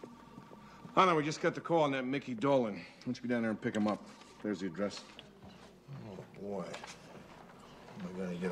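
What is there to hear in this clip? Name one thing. A middle-aged man speaks in a calm, conversational voice nearby.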